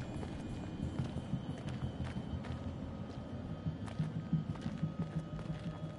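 Footsteps crunch on leaves and twigs.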